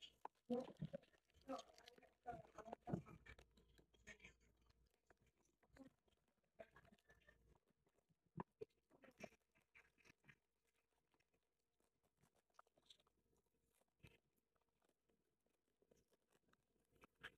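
A foil wrapper crinkles and tears as it is peeled open.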